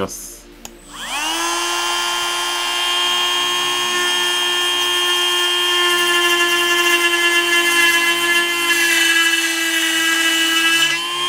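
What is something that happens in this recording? A small rotary tool whirs up quickly to a steady high whine.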